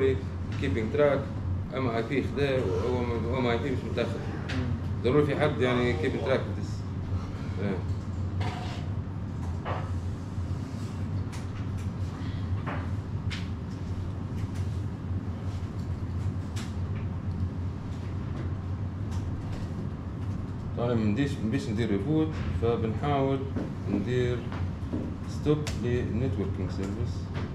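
A man speaks calmly to a room, heard from a few steps away.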